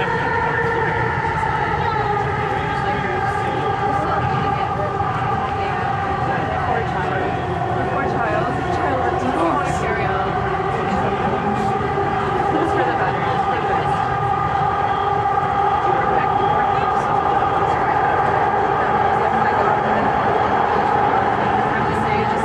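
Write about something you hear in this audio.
A train hums and whines steadily as it rolls along.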